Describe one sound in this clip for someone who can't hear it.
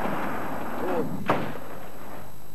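A field gun fires with a loud boom.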